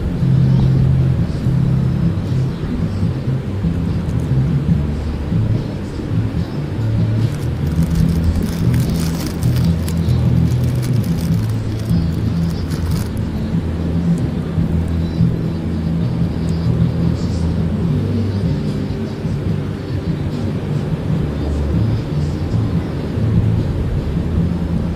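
Waves wash onto a beach.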